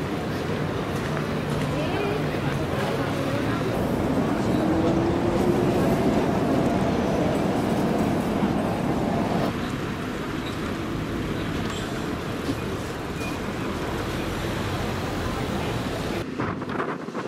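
A crowd murmurs and chatters outdoors in a busy square.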